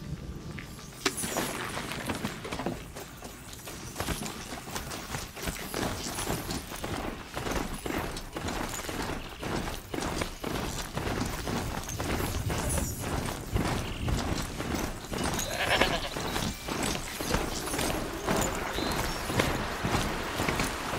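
Metal hooves clatter rapidly on the ground as a mechanical beast gallops.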